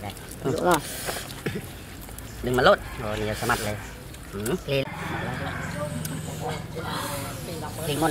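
Several young men talk casually close by, outdoors.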